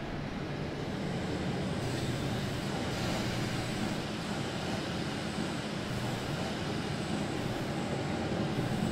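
A passenger train rumbles steadily along the tracks.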